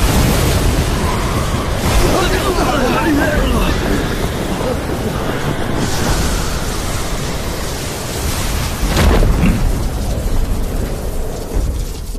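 Electricity crackles and booms loudly.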